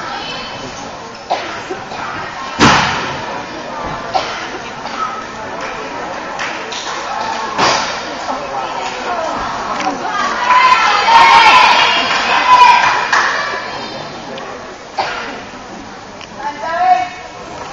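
Young girls chatter and call out in a large echoing gym.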